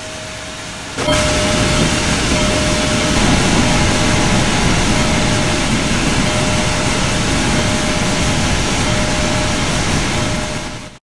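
A steam locomotive hisses and rumbles loudly close by.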